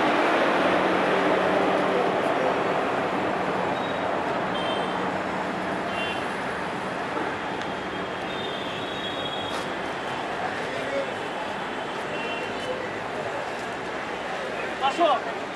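A train rolls slowly past with a steady rumble and rattle.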